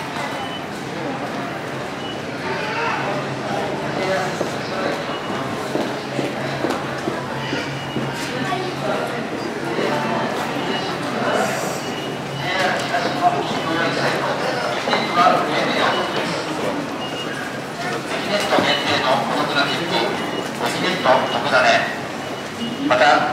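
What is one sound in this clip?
Many footsteps tap and shuffle on a hard floor.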